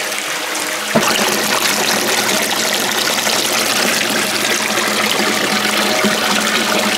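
Water streams from a spout and splashes loudly into a pool.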